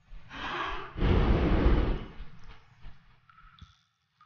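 A torch flares up with a loud whoosh.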